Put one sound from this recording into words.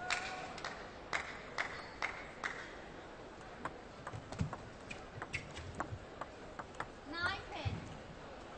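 A table tennis ball clicks sharply against paddles and the table.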